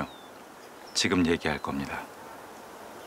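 A man speaks softly up close.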